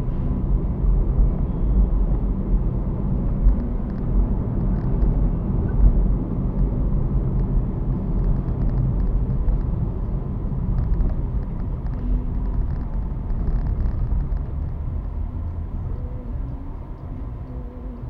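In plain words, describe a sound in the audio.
A car engine hums steadily and tyres rumble on the road, heard from inside the car.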